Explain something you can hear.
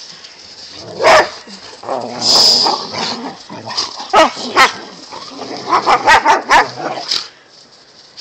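Dogs growl and bark playfully as they wrestle.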